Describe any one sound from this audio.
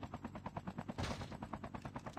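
A heavy thud sounds as a helicopter lands.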